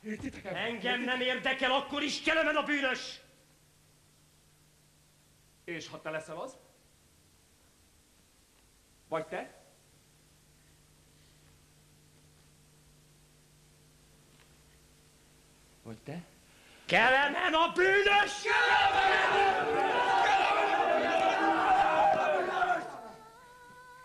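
A choir of young men sings loudly in a large hall.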